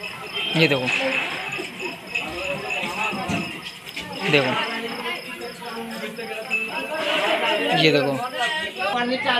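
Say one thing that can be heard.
Children shout and chatter nearby outdoors.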